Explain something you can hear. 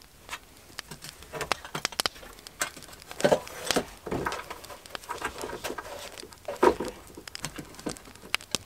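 Cloth and leather rustle as a pouch is wrapped and tied.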